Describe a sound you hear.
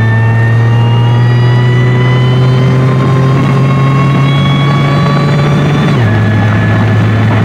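A supercharged V6 car engine accelerates at full throttle, its pitch rising.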